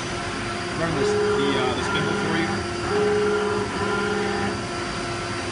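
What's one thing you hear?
A motor whirs loudly in short bursts as a tool turret turns.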